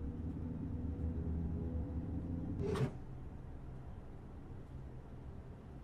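A train's electric motors hum low and steady as it rolls along the track.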